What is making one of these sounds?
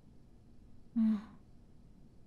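A young woman gives a short, amused reply.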